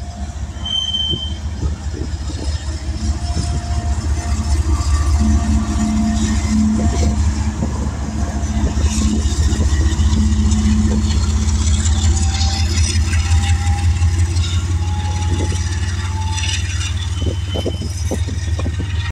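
Diesel freight locomotives rumble past close by and then move away.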